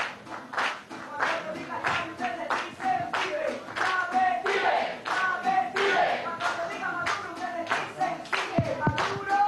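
A group of young people sings loudly together.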